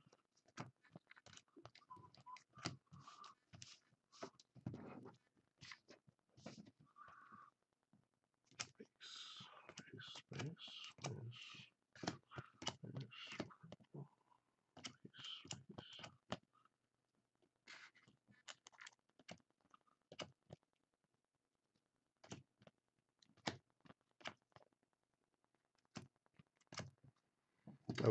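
Plastic card sleeves click and rustle as cards are flipped through by hand.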